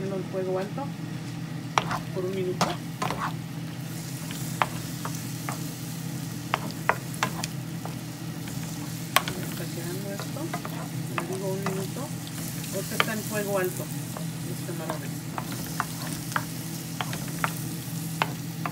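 Shrimp sizzle in hot oil in a pan.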